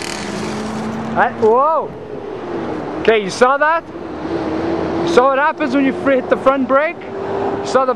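A small motorbike engine revs up and down close by.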